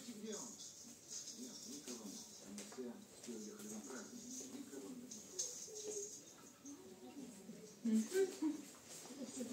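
A television plays speech nearby in a small room.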